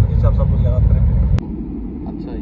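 A young man speaks calmly and close.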